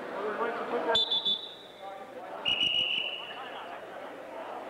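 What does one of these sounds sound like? A referee's whistle blows two short, sharp blasts.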